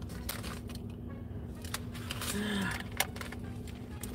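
A paper wrapper rustles.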